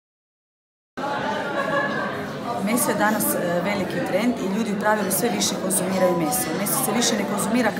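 A woman speaks calmly and clearly close to a microphone.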